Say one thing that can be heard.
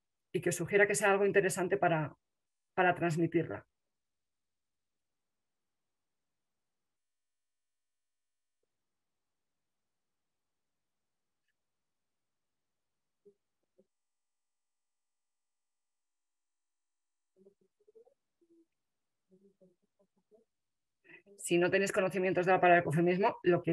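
A middle-aged woman speaks with animation over an online call.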